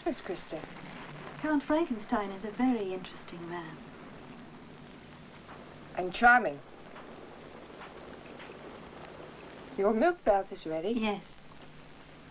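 A young woman speaks calmly nearby.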